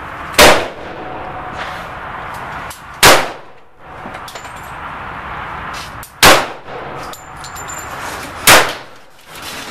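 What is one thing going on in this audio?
A compact .380 pistol fires single shots outdoors.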